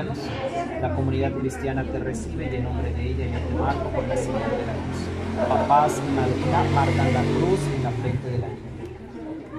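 A young man speaks calmly and clearly nearby.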